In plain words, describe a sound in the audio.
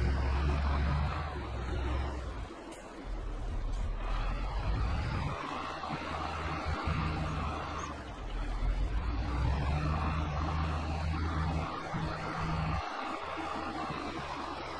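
A tractor engine hums steadily, rising and dipping as it drives.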